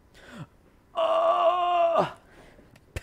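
A man yawns loudly into a microphone.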